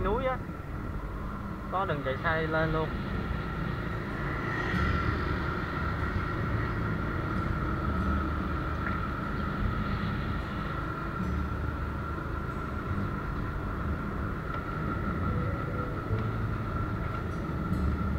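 A scooter engine hums while cruising along a street.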